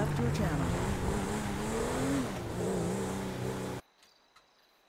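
A car engine hums and rises in pitch as the car speeds up along a road.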